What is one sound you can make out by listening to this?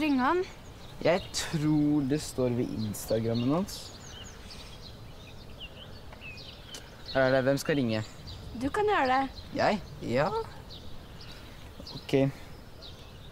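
A teenager speaks calmly close by.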